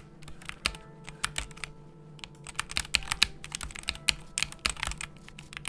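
Keyboard keys clack rapidly under quick typing.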